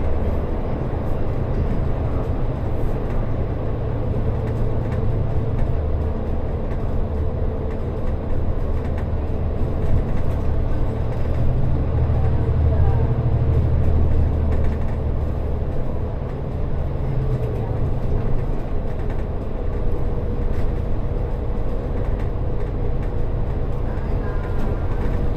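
A vehicle engine rumbles steadily as it drives through an echoing tunnel.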